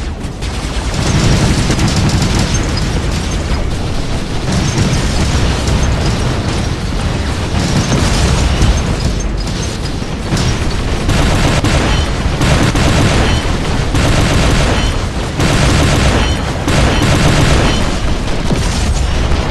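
Gunfire and explosions boom and crackle in bursts.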